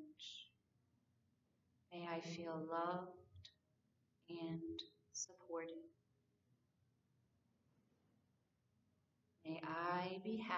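A woman speaks calmly and softly into a nearby microphone, pausing between phrases.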